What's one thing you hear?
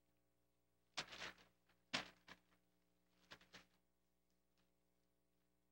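Paper rustles as it is handed over.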